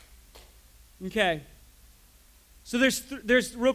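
A man speaks animatedly nearby.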